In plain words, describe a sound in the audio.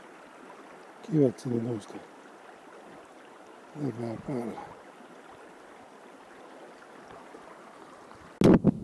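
Shallow water trickles gently over rocks.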